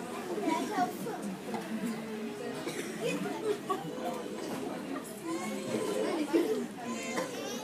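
Children and adults chatter over one another in a room with a slight echo.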